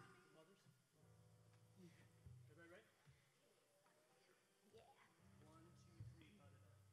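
A bass guitar plucks low notes.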